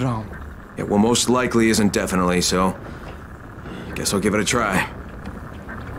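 A man's voice speaks calmly, heard as if from a game.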